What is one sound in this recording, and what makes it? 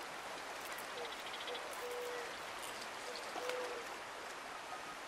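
A fish flaps and splashes on a fishing line.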